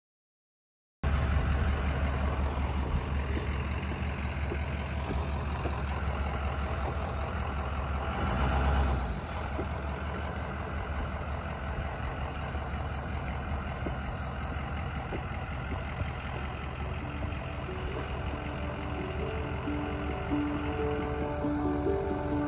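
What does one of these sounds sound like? A bus engine rumbles low as the bus idles and pulls slowly away.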